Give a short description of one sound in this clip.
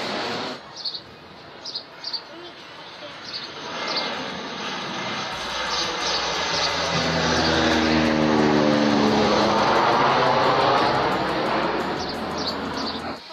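A low-flying plane roars overhead, growing louder and then slowly fading.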